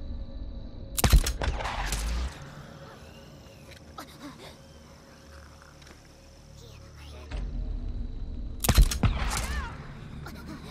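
A rifle fires loud single shots that echo away.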